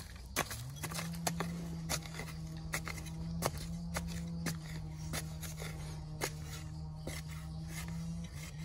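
A metal tool digs and scrapes into hard dirt with repeated thuds.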